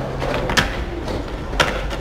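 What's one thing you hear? Skateboard wheels roll over concrete.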